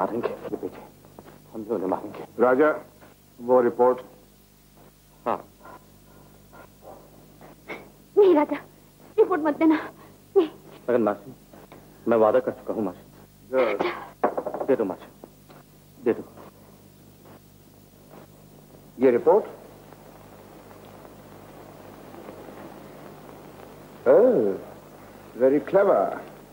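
A man speaks forcefully in short, tense bursts.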